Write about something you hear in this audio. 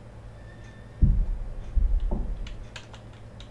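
A refrigerator door thumps softly as it swings.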